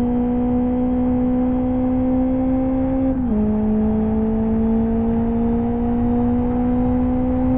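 A racing car engine drones at high revs, then drops in pitch with a gear shift and slowly climbs again.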